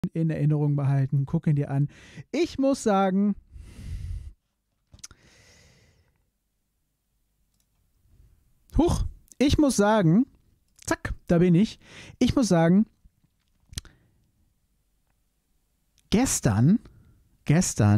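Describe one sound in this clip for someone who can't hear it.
A man with a deep voice speaks with animation close to a microphone.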